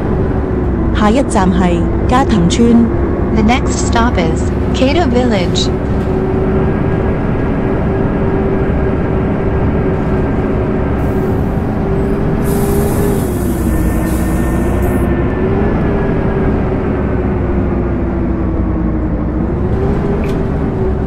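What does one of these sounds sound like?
A bus engine drones steadily, its pitch dipping and rising now and then.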